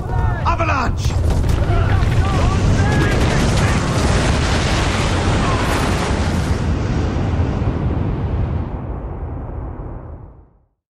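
A loud explosion roars and rumbles, then slowly fades away.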